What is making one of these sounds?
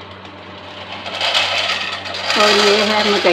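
Dry kernels pour and rattle into a metal pan.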